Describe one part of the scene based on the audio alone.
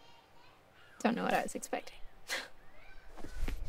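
A young woman speaks quietly and calmly.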